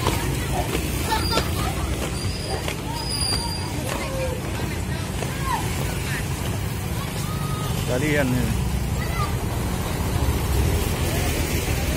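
Young girls chatter and call out to each other outdoors.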